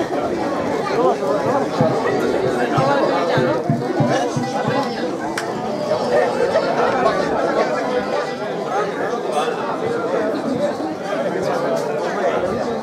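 Mandolins and guitars strum briskly.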